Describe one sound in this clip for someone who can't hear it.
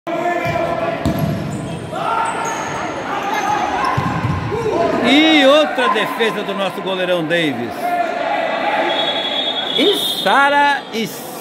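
Spectators shout and cheer loudly in an echoing hall.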